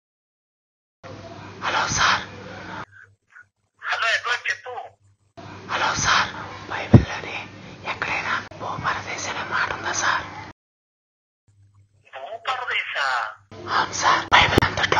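A young man talks on a phone with animation, close by.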